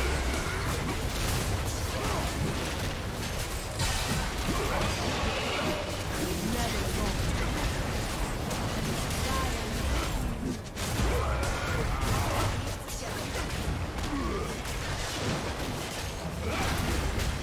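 Magic spells whoosh and crackle during a fight.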